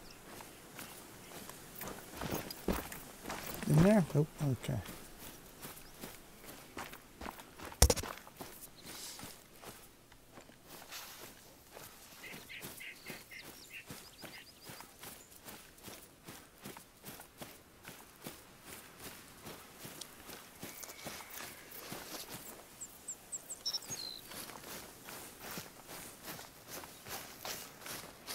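Footsteps swish steadily through grass.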